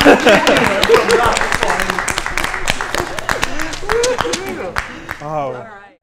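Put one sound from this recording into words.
A small group claps.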